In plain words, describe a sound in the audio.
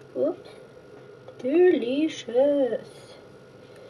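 A spatula scrapes batter from a ceramic bowl.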